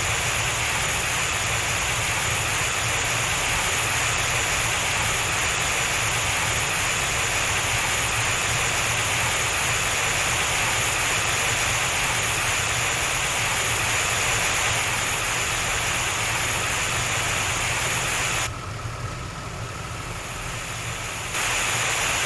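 Water hoses spray with a loud, steady hiss.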